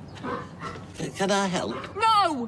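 An elderly man speaks with surprise, close by.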